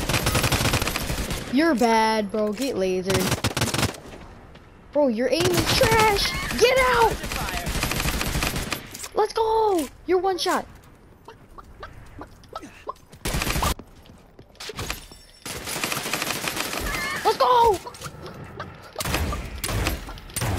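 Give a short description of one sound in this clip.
Video game gunfire rattles in rapid bursts.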